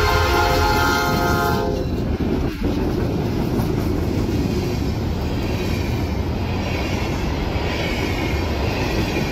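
Freight car wheels clatter and rumble over steel rails.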